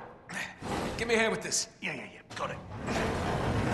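A man speaks briefly and casually.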